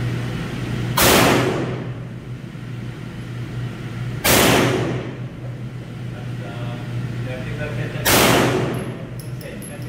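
A handgun fires loud single shots that echo in an enclosed space.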